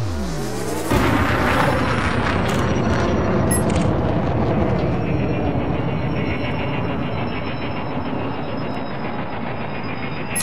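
A spacecraft engine rumbles loudly and steadily.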